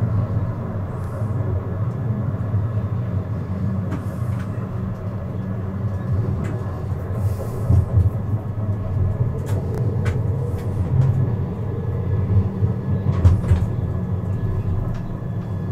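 A tram rumbles steadily along its tracks.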